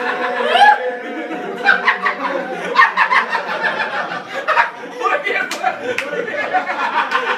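Several men laugh loudly and cheerfully nearby.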